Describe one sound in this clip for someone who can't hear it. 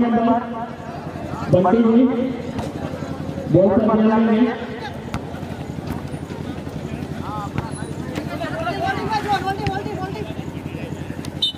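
A crowd murmurs and shouts outdoors.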